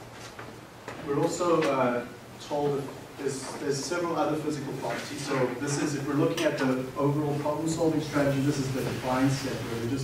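A man lectures calmly in an echoing room.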